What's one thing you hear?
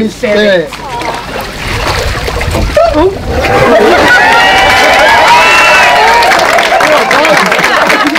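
Water splashes in a paddling pool.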